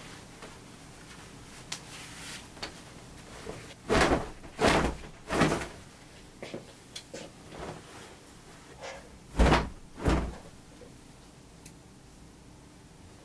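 Fabric rustles and flaps as clothes are shaken out and handled.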